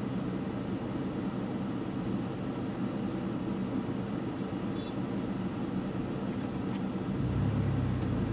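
A car engine idles with a low steady rumble from inside the car.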